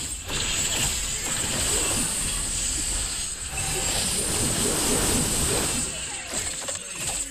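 Game sound effects of spells and hits crackle and whoosh.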